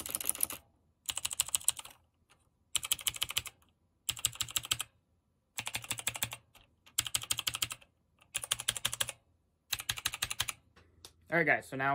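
Keys on a mechanical keyboard clack in quick bursts, close up.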